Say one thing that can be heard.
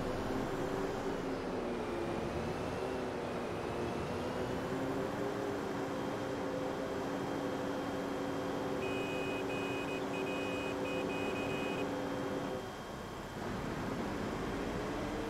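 A heavy diesel engine drones steadily as a wheel loader drives along.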